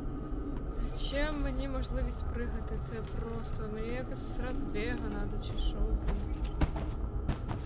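A young woman talks into a microphone, close by.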